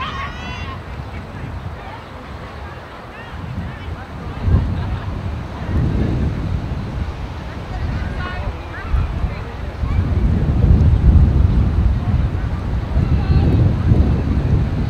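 Wind buffets outdoors in gusts.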